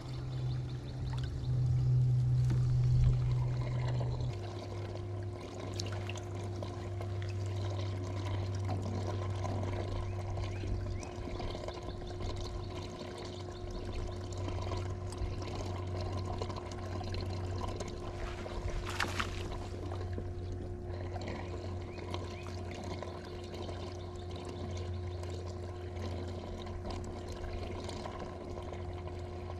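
A small motor hums steadily close by.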